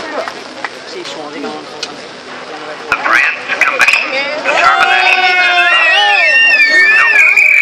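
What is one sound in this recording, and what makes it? A crowd of people talks and shouts nearby outdoors.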